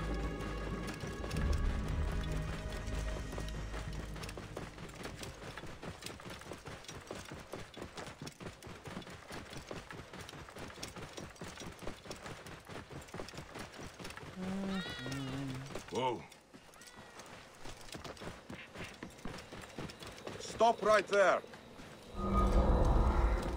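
A horse gallops with quick, rhythmic hoofbeats on a dirt path.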